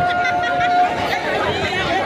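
Drummers beat hand drums loudly.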